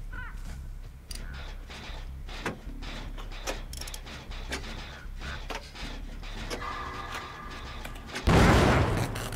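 A machine clanks and rattles as it is worked on.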